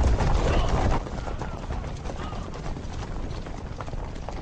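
Horses and marching troops rumble along at a distance.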